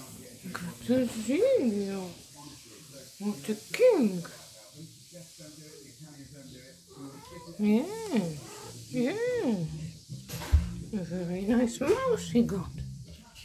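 A cat meows loudly several times, close by.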